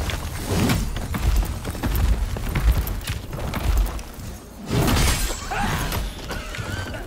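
Heavy blows strike with loud thuds.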